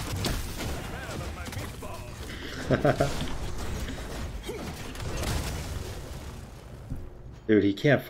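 Fantasy battle sounds clash and whoosh from a game.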